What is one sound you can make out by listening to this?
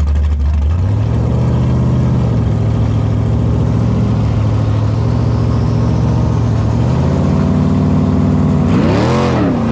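A car engine idles with a loud, deep rumble.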